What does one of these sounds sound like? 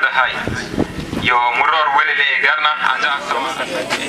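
A man speaks loudly through a microphone and loudspeakers outdoors.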